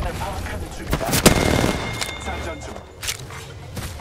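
Gunshots fire in quick bursts.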